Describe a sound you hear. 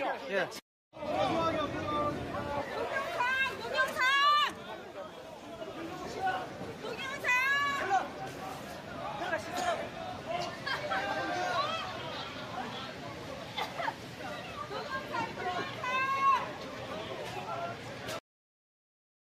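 A crowd shouts and clamors outdoors.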